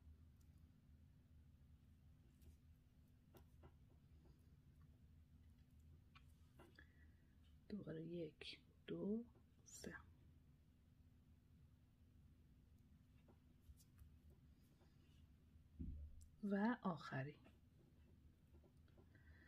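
Small glass beads click softly against each other as they are threaded.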